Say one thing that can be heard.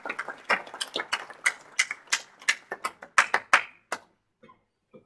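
An audience claps in a large room.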